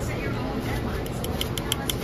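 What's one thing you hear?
Plastic tongs click as food is picked up.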